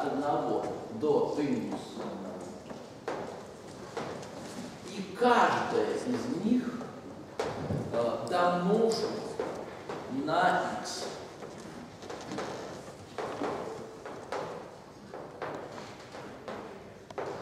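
An elderly woman speaks calmly, as if lecturing.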